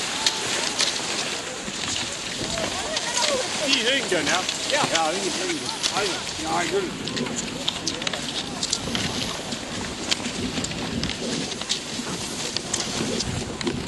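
Skis scrape and swish over packed snow.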